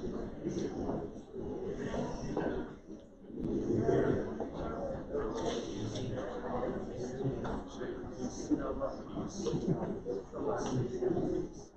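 A man speaks steadily in a large echoing room.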